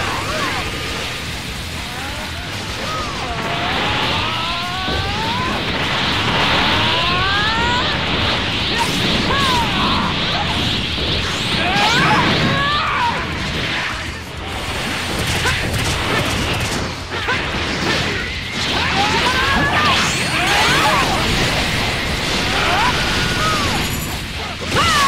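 Energy blasts whoosh and crackle in a fast game fight.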